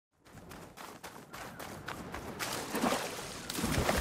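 Footsteps run quickly across wet ground.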